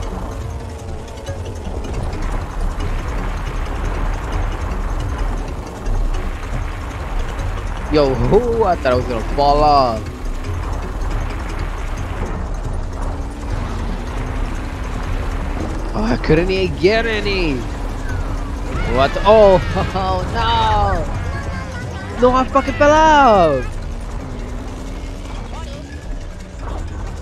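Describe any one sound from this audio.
A kart engine hums steadily.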